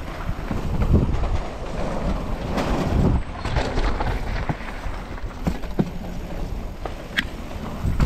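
Bicycle wheels rattle over wooden boards.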